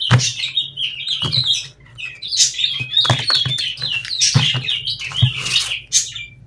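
Playing cards are shuffled with quick flicks and taps.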